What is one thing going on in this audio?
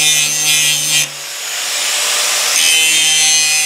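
An angle grinder briefly winds down and spins back up.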